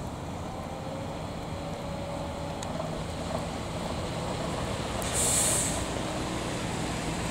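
A bus engine rumbles as it pulls slowly forward.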